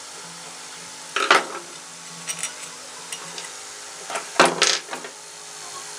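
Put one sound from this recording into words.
A screwdriver clatters onto a table.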